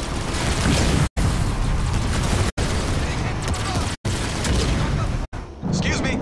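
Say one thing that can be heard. Explosions rumble and boom.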